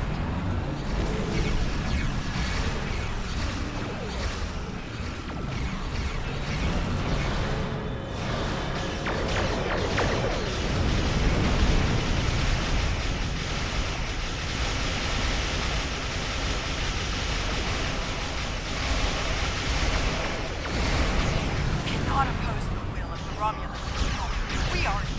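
Weapon fire blasts and zaps in a space battle.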